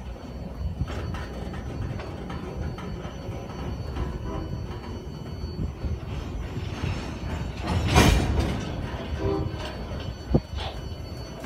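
Train wheels clank and knock over rail joints.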